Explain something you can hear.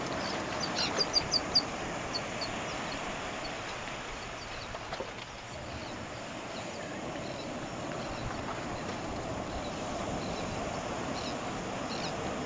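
Waves break and wash steadily onto a shore nearby.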